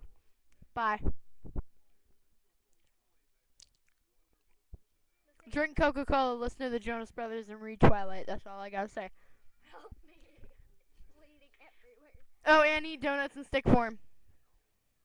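A young woman sings loudly and expressively into a microphone, close by.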